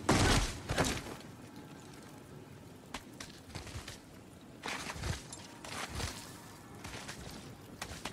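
Wooden ladder rungs creak and knock under climbing steps.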